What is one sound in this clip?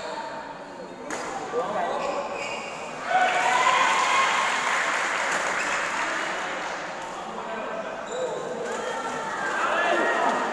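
A crowd of men and women chatter and call out in a large echoing hall.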